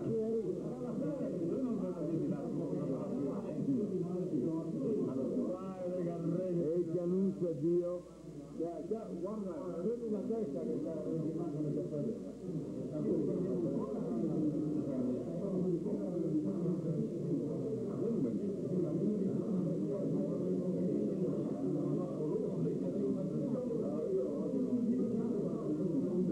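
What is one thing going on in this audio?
A crowd of men chatter nearby in a room.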